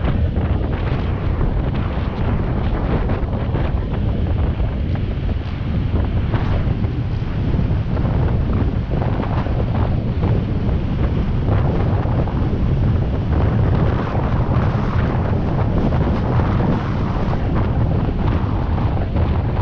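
Wind buffets a microphone on a moving bicycle.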